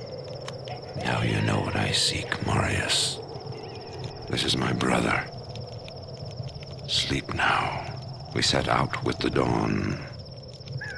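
An elderly man speaks slowly in a low, menacing voice.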